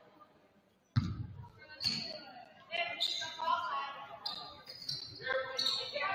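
A basketball bounces with hollow thumps in an echoing gym.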